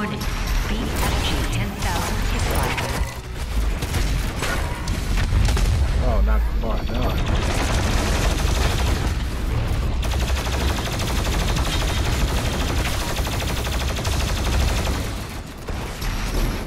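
Explosions boom and crash.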